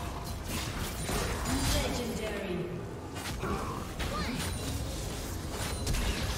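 Magical spell effects whoosh and crackle in rapid bursts.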